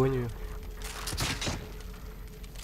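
A crossbow fires a bolt with a sharp snap.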